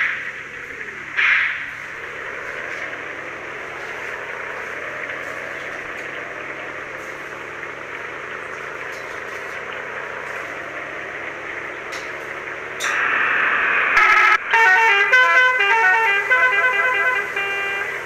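A bus engine hums steadily, its pitch slowly rising as it speeds up.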